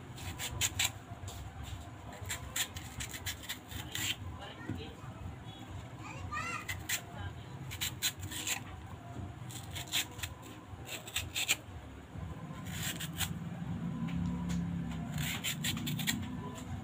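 A knife slices through a raw potato with crisp, repeated scraping cuts.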